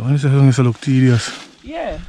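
Dry leaves crunch underfoot.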